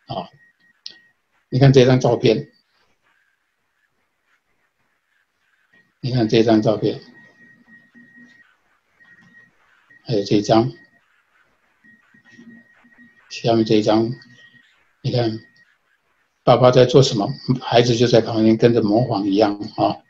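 An elderly man speaks calmly through an online call, with pauses.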